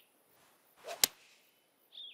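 A golf club strikes a ball with a sharp crack.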